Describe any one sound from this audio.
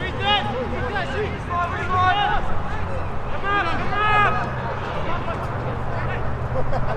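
Football players shout to each other outdoors on an open pitch.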